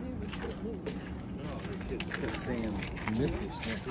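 Footsteps in sandals tap on wooden boards.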